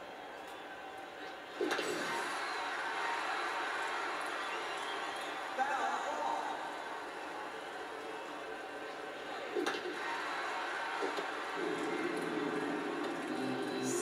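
A stadium crowd murmurs and cheers through a television speaker.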